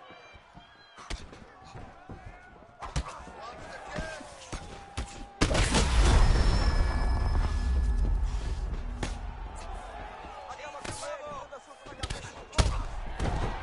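Kicks and punches land with sharp thuds.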